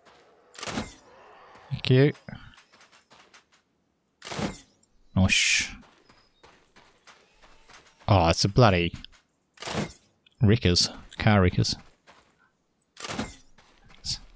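Rifle shots crack one at a time, with pauses between them.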